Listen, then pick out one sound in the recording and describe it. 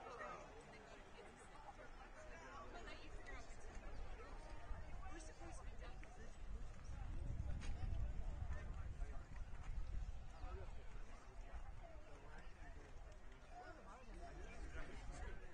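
People chatter at a distance.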